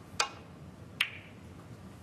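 Snooker balls clack together.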